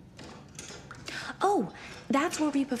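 A young woman speaks calmly and brightly, close by.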